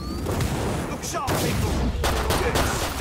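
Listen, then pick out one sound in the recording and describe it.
A flamethrower roars with a rushing burst of fire.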